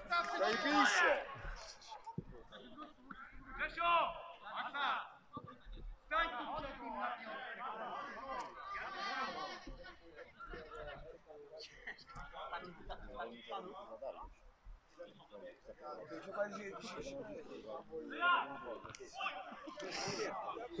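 Men shout and call out to each other in the distance.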